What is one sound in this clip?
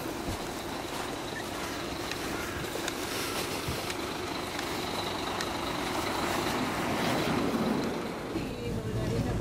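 A city bus pulls up with a low engine rumble.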